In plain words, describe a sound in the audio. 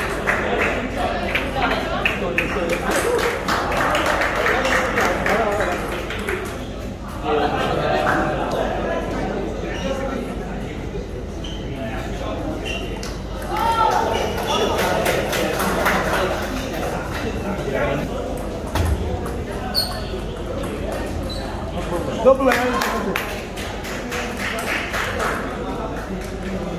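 A crowd of spectators chatters indoors.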